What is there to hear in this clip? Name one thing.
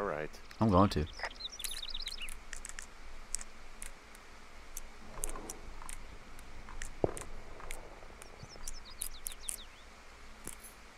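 A combination lock's dials click as they are turned.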